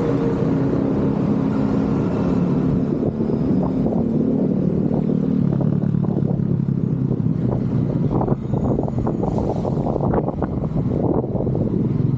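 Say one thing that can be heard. Cars and a motorcycle drive past on the street nearby.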